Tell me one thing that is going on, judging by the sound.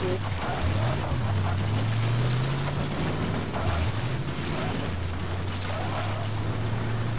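A car engine drones while driving along.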